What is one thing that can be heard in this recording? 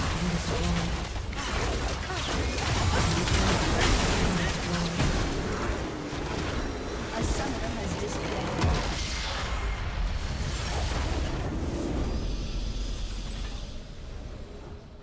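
Game spell effects and impacts crash and burst in a busy battle.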